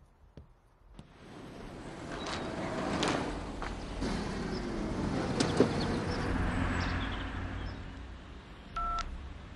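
A sedan drives up and pulls to a stop.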